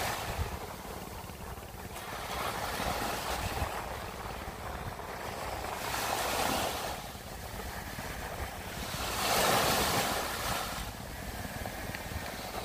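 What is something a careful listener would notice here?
Small waves break and wash up on a sandy beach in surges.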